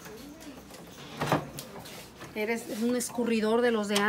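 A plastic cutting board clatters against wood.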